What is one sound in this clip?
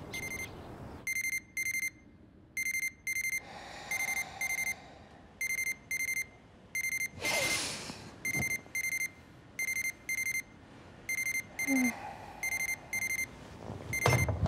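An alarm clock beeps in quick repeated bursts.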